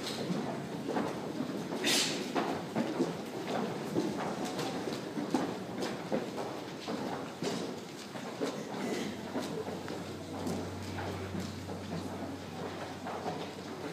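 A group of singers sings together.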